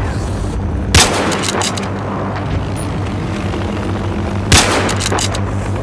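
A rifle fires loud, sharp shots that echo briefly.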